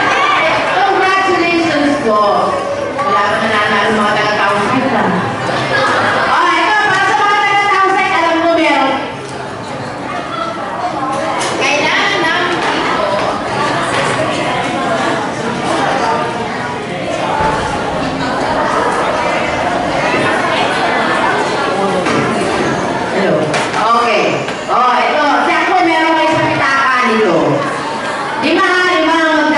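Children chatter and shout in the background.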